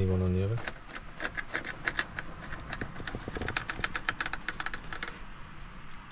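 A knife saws through toasted bread with rapid crunching scrapes.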